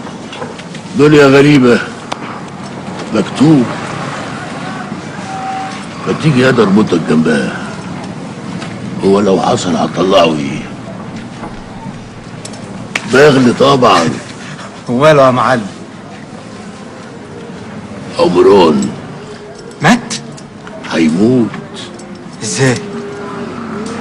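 A young man speaks heatedly, close by.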